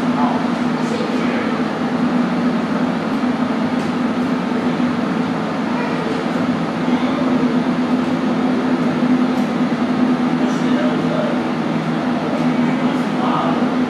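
Computer fans hum steadily.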